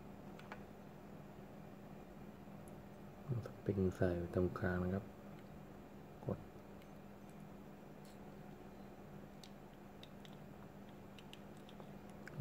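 Small plastic parts click and snap as they are fitted together.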